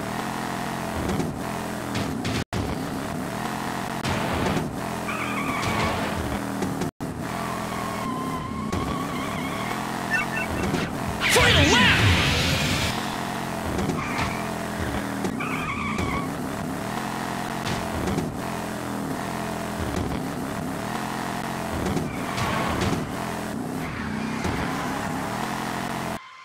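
Arcade racing game car engines drone and whine.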